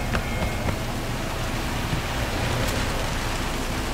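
A truck engine rumbles as it drives past.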